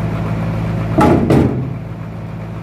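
A heavy wooden slab thuds and knocks against other wood.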